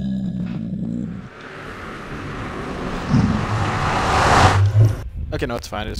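A low, warbling whoosh swells and fades as someone passes through a glowing portal.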